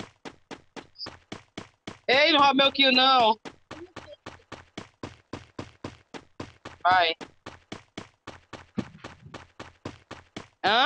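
Quick footsteps thud steadily on grass.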